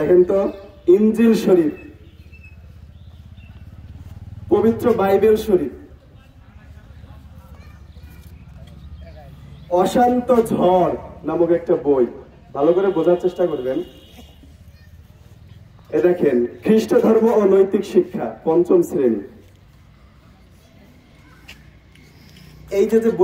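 A man speaks loudly through a microphone and loudspeaker outdoors, in short bursts with pauses.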